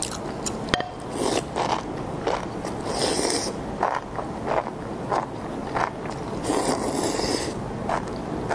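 A young woman slurps noodles loudly close to a microphone.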